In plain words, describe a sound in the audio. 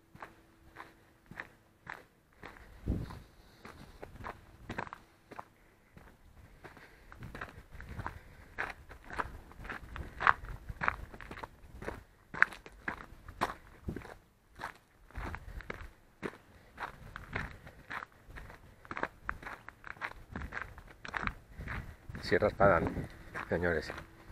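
Footsteps crunch on loose gravel at a steady walking pace.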